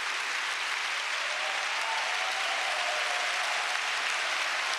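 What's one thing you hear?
People in a crowd cheer and whoop.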